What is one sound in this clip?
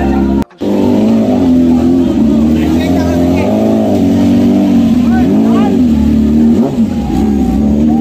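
A motorcycle engine idles loudly close by, revving up and down.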